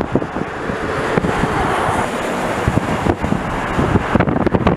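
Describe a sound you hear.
A heavy truck passes close by on a highway.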